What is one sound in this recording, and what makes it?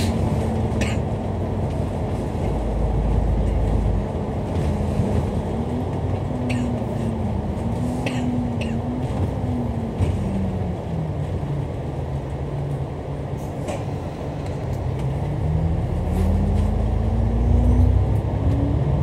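A bus engine rumbles steadily from close by, rising and falling in pitch as it speeds up and slows down.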